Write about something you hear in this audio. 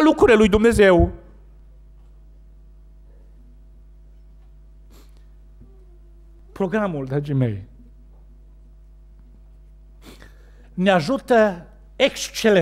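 A man speaks with emphasis into a microphone in a large hall, pausing between phrases.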